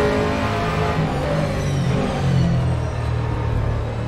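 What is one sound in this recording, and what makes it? Tyres squeal through corners.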